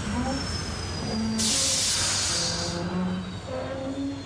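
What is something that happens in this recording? A metal valve wheel creaks as it turns.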